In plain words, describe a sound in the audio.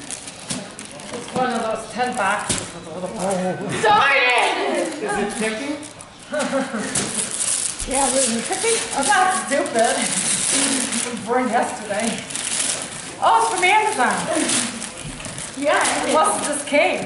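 A woman talks cheerfully nearby.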